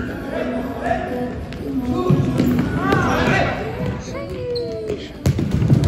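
Several young men shout and call out to each other, echoing in a large hall.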